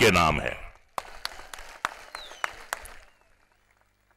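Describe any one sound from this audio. A large crowd cheers.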